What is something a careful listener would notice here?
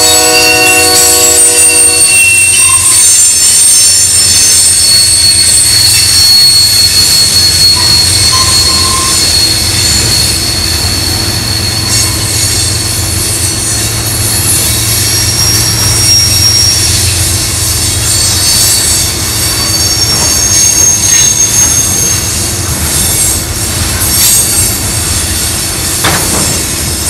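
A freight train rumbles and clacks past close by.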